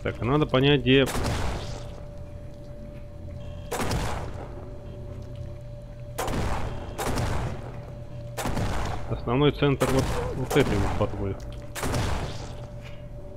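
A rifle fires in loud, sharp bursts.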